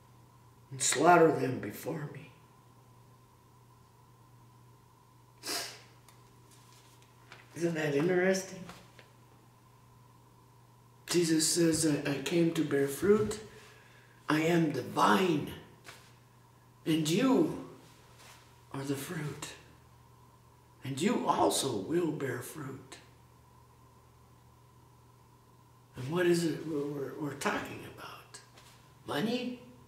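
A middle-aged man speaks close by in a slow, earnest voice, with pauses.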